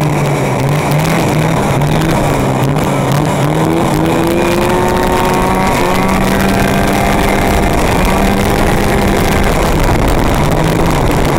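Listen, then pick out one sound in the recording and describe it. A snowmobile engine drones loudly up close, its pitch rising and falling.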